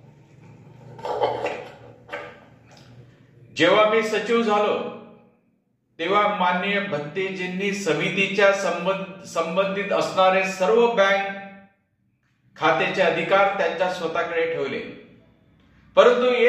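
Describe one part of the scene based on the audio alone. A middle-aged man speaks calmly and steadily into a microphone, as if reading out a statement.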